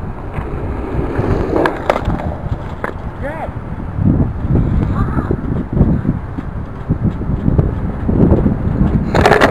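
Skateboard wheels roll and rattle over rough pavement close by.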